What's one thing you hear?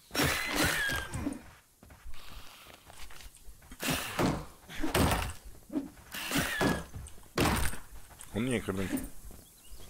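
Weapons strike in a fight, with sharp hits coming quickly.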